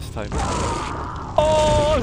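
An electric beam crackles and buzzes.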